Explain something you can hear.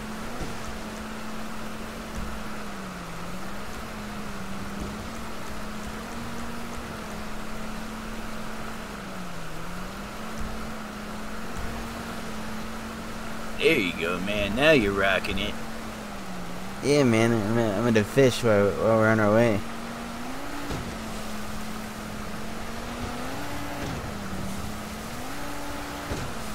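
A motorboat engine drones steadily, dipping and rising in pitch now and then.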